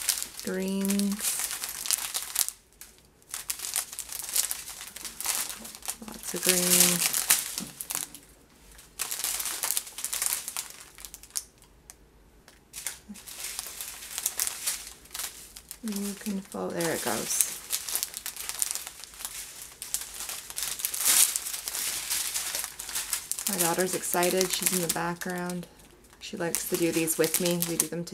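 Small plastic zip bags filled with tiny beads crinkle as they are handled.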